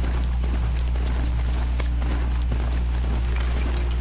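Horse hooves thud on soft ground.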